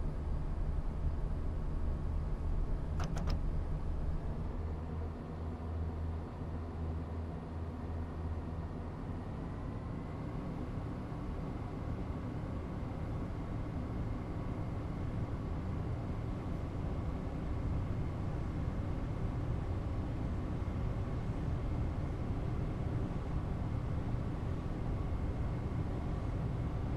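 A train's electric motor hums with a steady whine.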